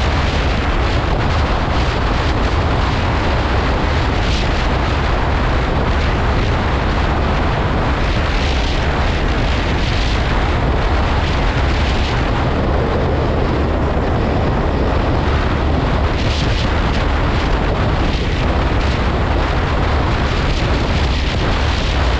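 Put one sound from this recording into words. A motorcycle engine hums steadily as the bike cruises along.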